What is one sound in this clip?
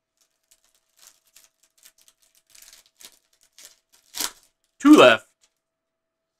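Stiff trading cards rustle and slide against each other in gloved hands.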